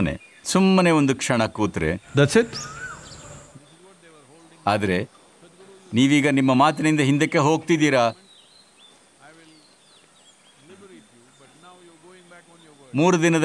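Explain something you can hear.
An elderly man speaks calmly and thoughtfully into a microphone, with pauses.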